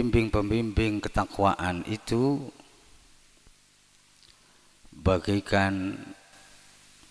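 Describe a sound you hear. A man chants in a melodic voice through a microphone, with echo.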